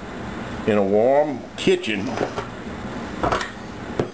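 A metal bowl clanks as it is lifted off a mixer.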